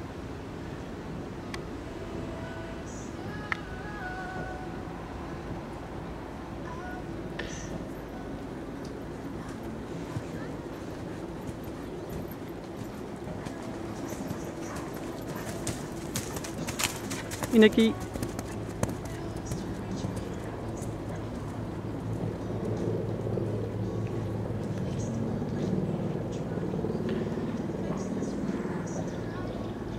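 A horse's hooves thud softly on sand.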